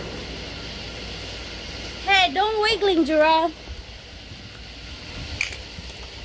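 Fireworks fountains hiss and crackle steadily outdoors.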